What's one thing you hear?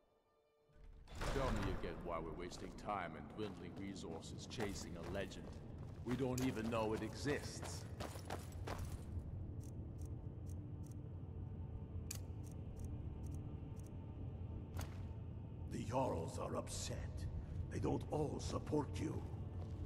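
Armored footsteps clank on a stone floor.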